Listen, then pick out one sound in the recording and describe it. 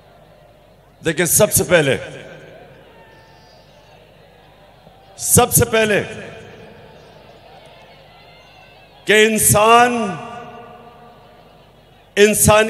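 A man speaks forcefully in short bursts through a loudspeaker, echoing outdoors.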